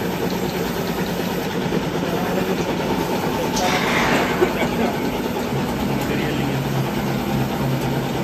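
Grain pours and patters into metal buckets.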